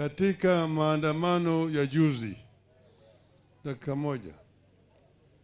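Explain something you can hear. A man sings in long drawn-out phrases through a microphone and loudspeaker.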